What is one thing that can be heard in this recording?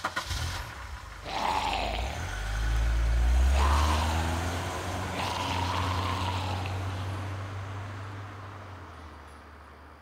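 A truck engine rumbles low in the distance.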